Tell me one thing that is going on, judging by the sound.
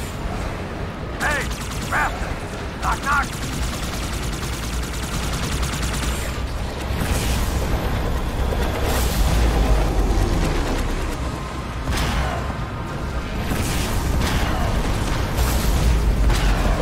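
A hovering vehicle's engine hums and roars steadily.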